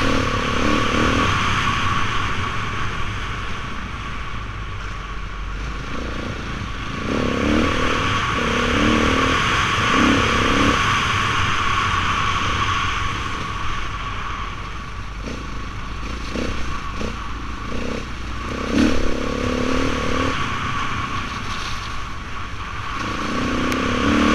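Tyres crunch and rattle over a rough gravel track.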